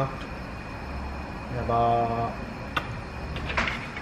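Oil glugs out of a bottle into a pan.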